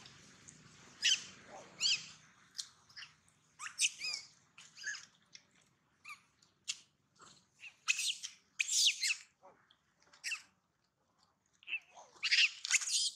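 A baby monkey squeals in short, high bursts.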